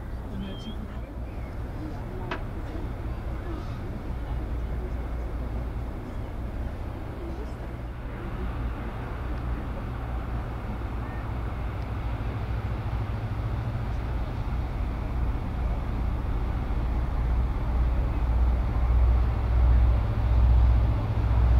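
Water washes along a ship's bow.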